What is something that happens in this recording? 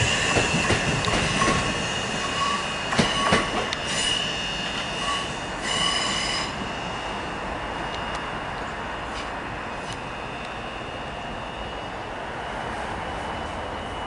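A train rumbles away along the tracks.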